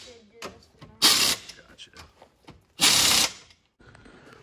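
Compressed air hisses from a hose in short bursts.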